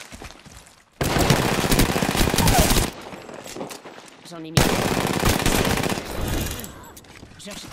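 An automatic rifle fires in bursts.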